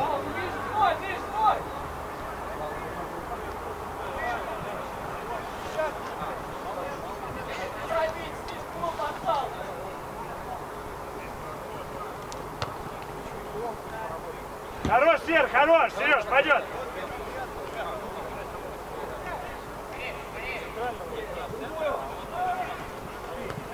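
Young men shout to each other from across an open outdoor pitch.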